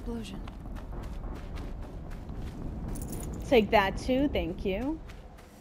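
Quick footsteps crunch over snow as someone runs.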